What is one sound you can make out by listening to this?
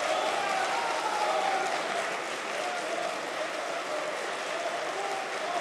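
A crowd of men cheers and calls out.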